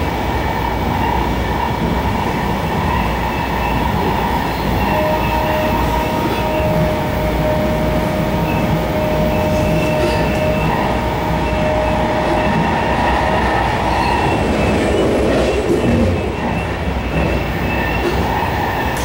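A train rumbles and hums steadily along the tracks.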